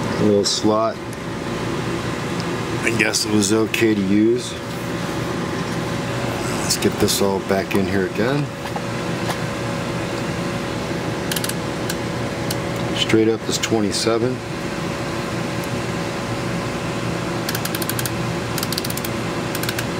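A knob clicks as it is turned.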